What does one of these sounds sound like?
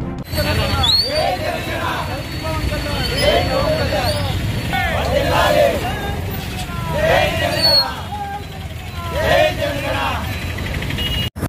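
A group of young men chant slogans loudly together outdoors.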